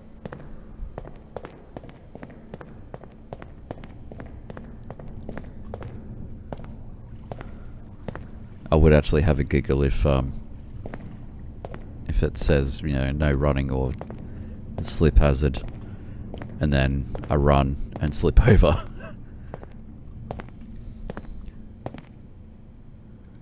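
Footsteps tap steadily on a hard tiled floor.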